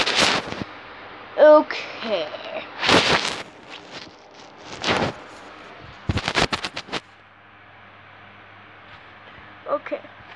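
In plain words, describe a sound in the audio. A young boy talks close up.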